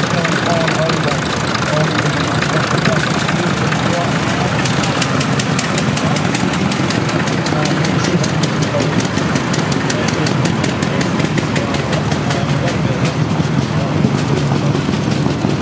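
An old tractor engine idles close by with a steady, rapid chugging.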